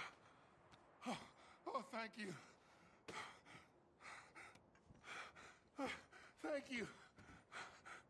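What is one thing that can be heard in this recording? A man speaks weakly with relief.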